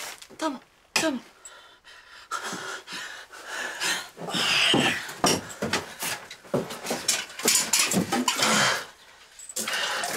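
A man groans in pain close by.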